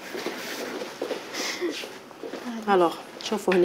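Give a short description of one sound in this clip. A young woman laughs cheerfully nearby.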